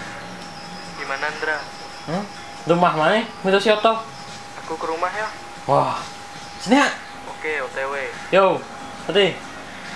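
A young man talks casually into a phone close by.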